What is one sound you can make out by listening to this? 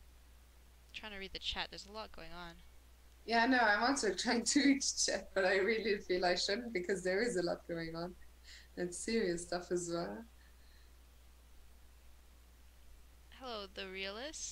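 A young woman speaks with animation over a headset microphone.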